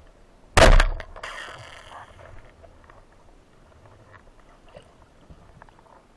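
Water gurgles and crackles softly underwater.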